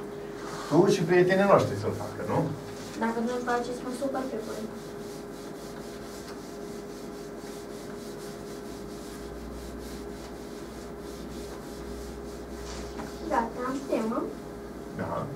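A cloth eraser rubs and swishes across a chalkboard.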